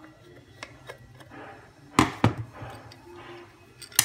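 A plastic casing is pulled apart with a click.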